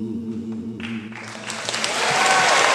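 A woman sings into a microphone, her voice wavering.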